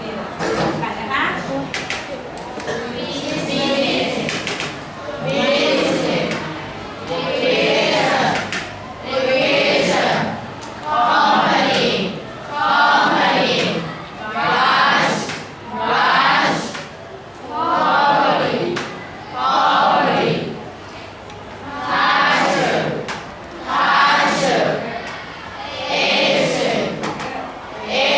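A group of young students chant together in loud, rhythmic phrases.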